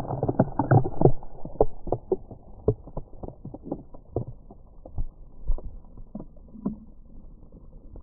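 Tiny ice pellets patter and crackle onto the frozen ground.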